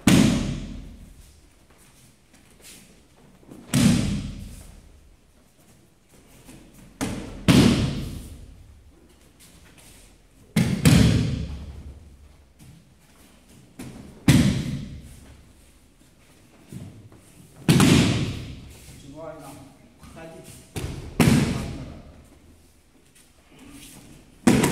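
Bodies slam onto a padded mat with loud thuds that echo in a bare room.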